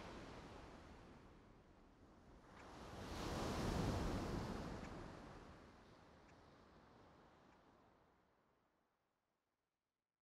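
Ocean waves churn and crash, swelling and then fading away.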